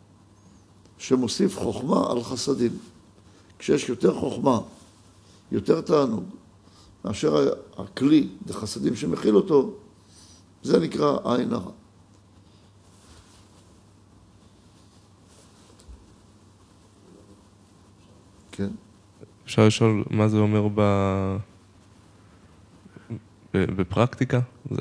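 A middle-aged man speaks calmly into a close microphone, in bursts with pauses.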